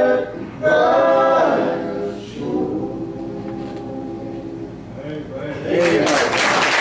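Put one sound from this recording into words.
A guitar strums along with the singing.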